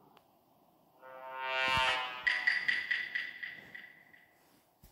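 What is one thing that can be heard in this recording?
A dramatic video game reveal sting swells and rings out.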